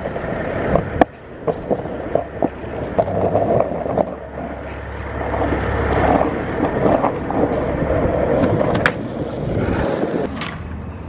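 Skateboard wheels roll and rumble over rough pavement.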